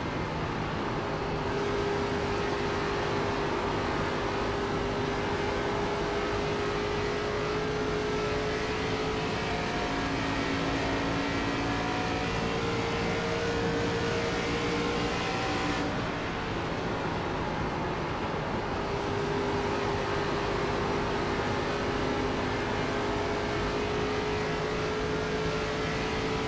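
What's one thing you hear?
A race car engine roars steadily at high speed, its pitch rising and falling slightly through the turns.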